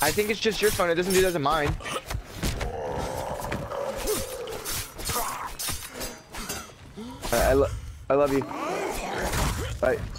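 A knife slashes and thuds into bodies.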